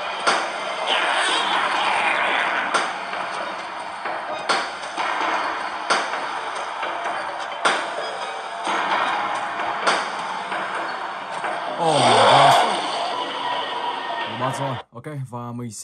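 Eerie music plays through a small speaker.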